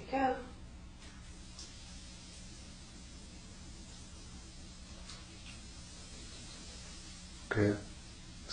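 Soda pours and fizzes into a pan.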